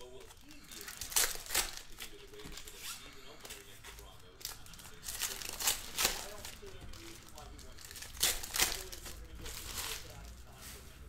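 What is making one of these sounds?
Foil packs crinkle and tear open.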